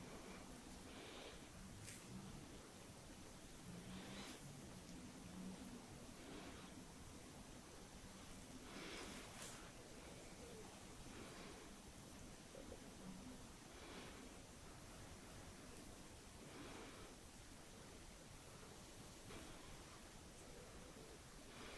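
Fingers softly rub and brush against skin, close by.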